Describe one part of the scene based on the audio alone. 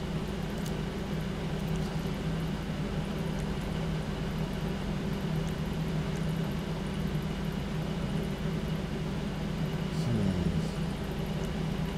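A car engine idles steadily with a low rumble.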